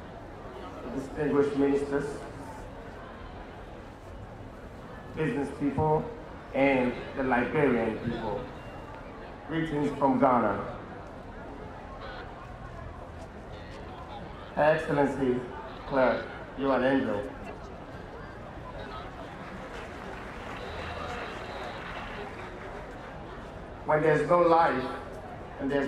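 A man speaks into a microphone over loudspeakers outdoors, in short bursts with pauses.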